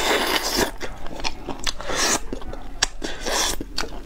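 A young woman chews and smacks her lips close to a microphone.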